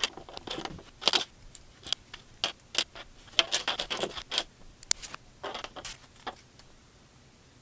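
Small plastic bricks click and rattle as hands sort and snap them together.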